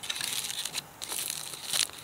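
Aluminium foil crinkles under a hand.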